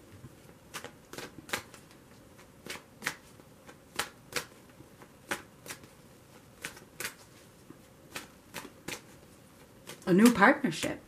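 Playing cards riffle and snap as they are shuffled by hand.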